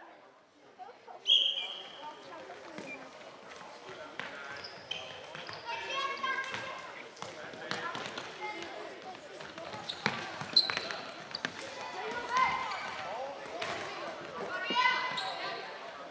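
Sticks click against a plastic ball and the floor.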